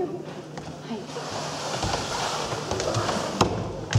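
Cardboard boxes scrape and rustle as a woman moves them.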